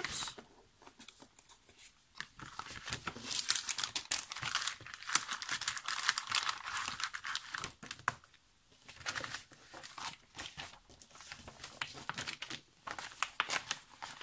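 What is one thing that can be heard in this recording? A plastic sleeve crinkles and rustles as it is handled.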